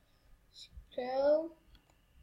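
A device gives a short electronic tone.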